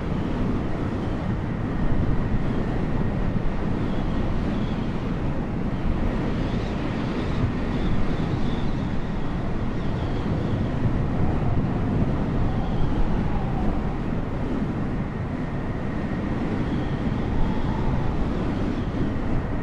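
A jet airliner's engines roar steadily as it flies.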